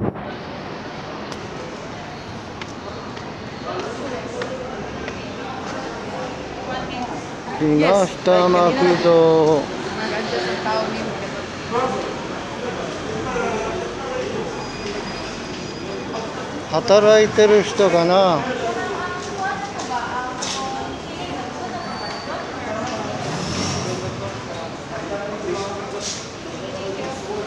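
People chatter softly in the background.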